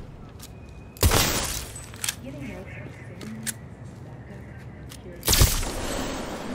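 Gunshots bang sharply.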